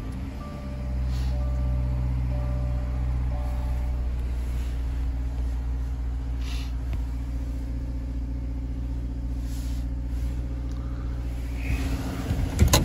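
A flat-four car engine idles.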